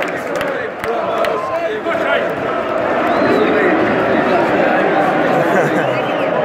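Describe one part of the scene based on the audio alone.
A large stadium crowd chatters and sings in a steady roar outdoors.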